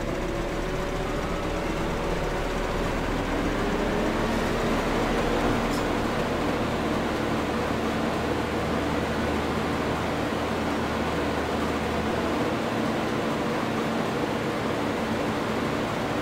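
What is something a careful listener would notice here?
A harvester header whirs as it cuts through crops.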